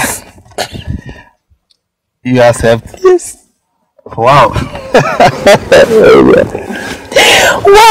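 A man laughs heartily close by.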